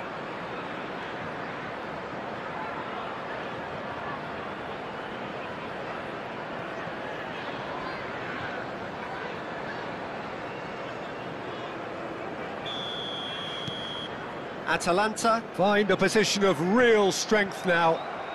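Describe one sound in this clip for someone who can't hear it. A large stadium crowd roars steadily in the distance.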